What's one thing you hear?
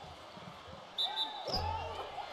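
A referee's whistle blows once.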